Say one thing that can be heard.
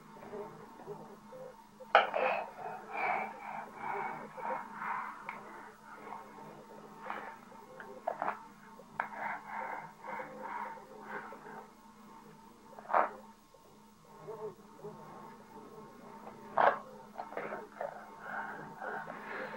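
A spoon scrapes and clinks in a plastic bowl.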